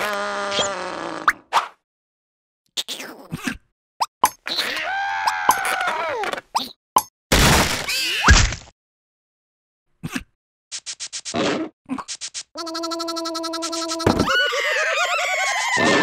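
Cartoon creatures babble and squeal in high, squeaky voices.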